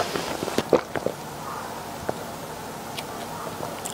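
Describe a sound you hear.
A young woman gulps down a drink.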